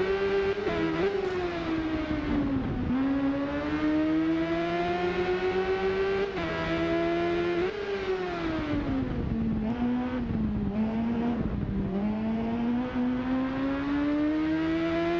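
A motorcycle engine revs high, its pitch rising through the gears and dropping as it slows for corners.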